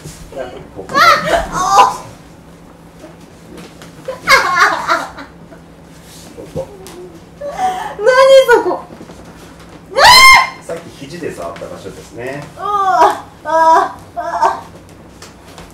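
A young woman cries out and laughs close by.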